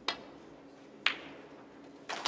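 Snooker balls click together on the table.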